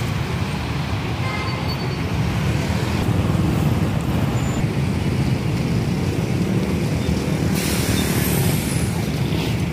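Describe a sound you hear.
Motor scooters and traffic pass along a nearby road.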